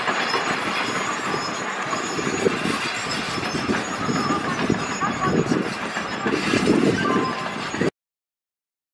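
A train rumbles along the tracks.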